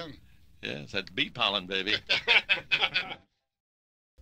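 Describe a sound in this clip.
An elderly man speaks into a microphone, heard as if on the radio.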